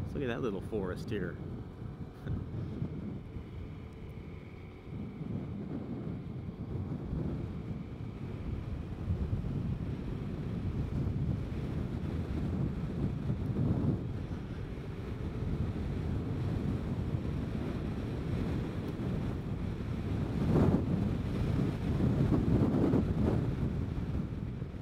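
Wind rushes and buffets loudly past the rider.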